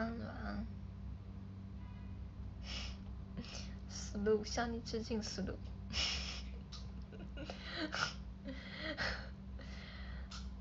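A young woman speaks softly and cheerfully into a close phone microphone.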